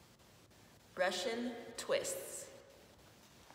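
A woman speaks close by with animation.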